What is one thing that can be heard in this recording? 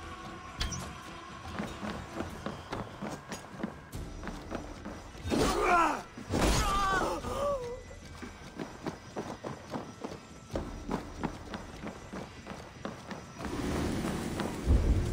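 Footsteps thud quickly on wooden planks.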